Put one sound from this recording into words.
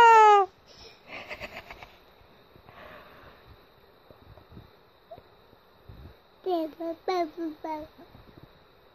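A baby babbles and coos softly up close.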